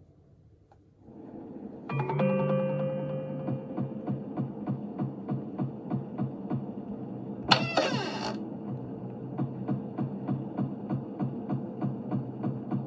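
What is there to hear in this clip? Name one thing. Game music plays from a tablet.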